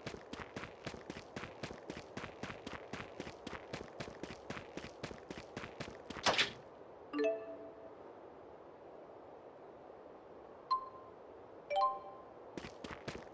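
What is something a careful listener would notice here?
Quick footsteps patter on sandy ground.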